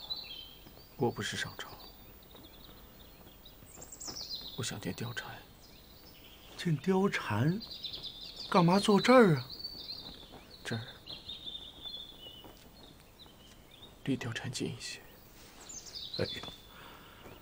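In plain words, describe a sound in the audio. A young man speaks quietly and wearily, close by.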